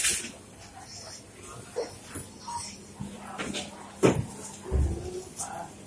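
Shoppers murmur and chatter nearby.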